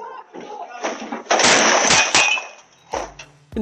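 A heavy load crashes and clatters onto a road.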